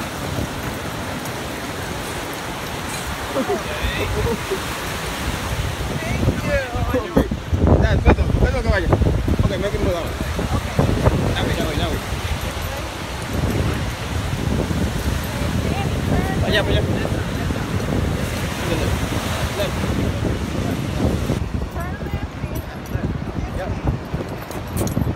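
Waves break and wash onto a beach nearby.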